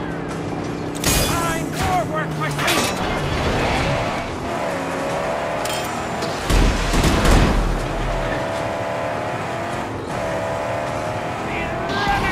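Tyres skid and scrape on sand.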